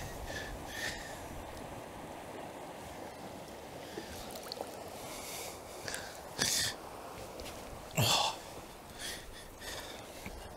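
A river's water ripples and gurgles steadily close by.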